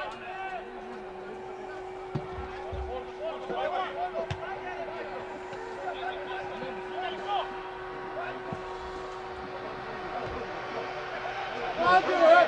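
A football is kicked hard on an open pitch.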